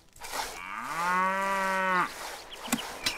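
Cows moo.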